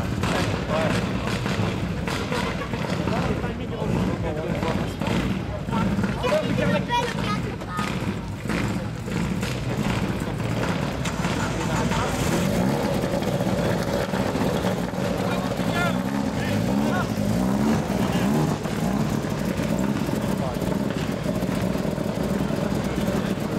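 A rally car engine idles with a deep rumble close by.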